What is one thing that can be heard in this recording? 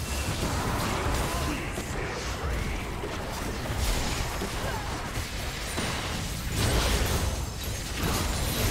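Magic blasts and clashing weapons crackle and burst in a busy video game fight.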